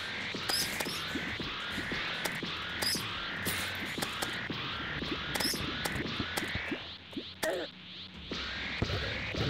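Rapid magic shots fire and burst in quick succession.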